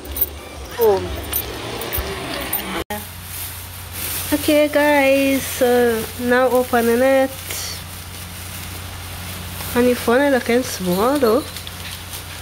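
A woman speaks in a lilting, sing-song voice close by.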